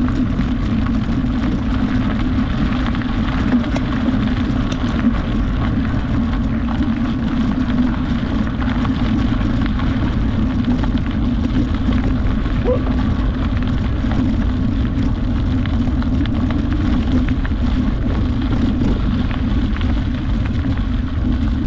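Tyres crunch steadily over gravel.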